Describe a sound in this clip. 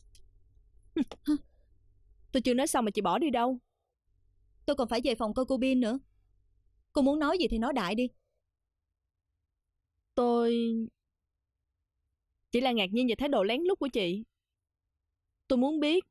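A young woman speaks quietly and emotionally, close by.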